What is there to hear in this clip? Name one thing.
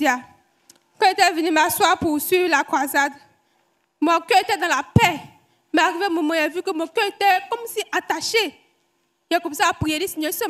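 A young woman speaks with emotion into a microphone, heard loud through a loudspeaker, in bursts with pauses.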